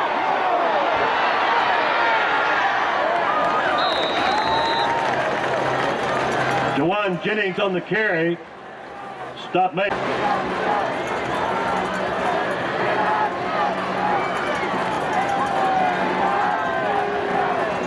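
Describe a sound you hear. A large crowd cheers and shouts outdoors.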